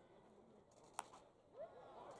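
A bat cracks sharply against a baseball.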